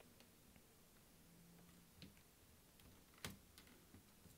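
A laptop is set down on a rubber mat with a soft knock.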